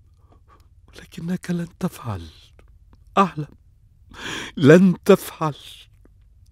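A man speaks slowly and with emotion, close by.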